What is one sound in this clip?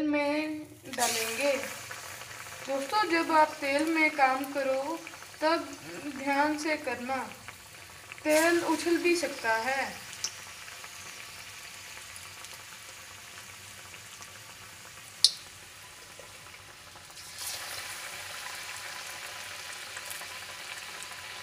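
Butter sizzles and crackles in a hot pan.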